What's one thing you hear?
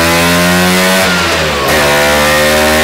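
A scooter engine drops briefly in pitch as it shifts gear, then climbs again.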